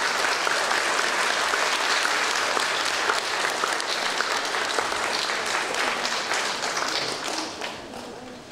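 Footsteps shuffle across a wooden stage in a large hall.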